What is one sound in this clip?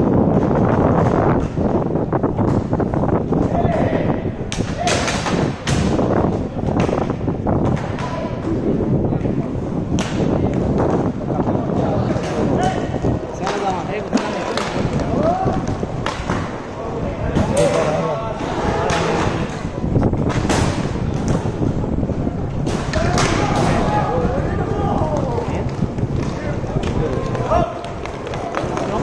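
Skate wheels roll and rumble on a hard court.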